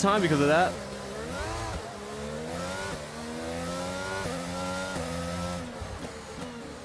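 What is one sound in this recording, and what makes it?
A racing car engine revs up and climbs through the gears.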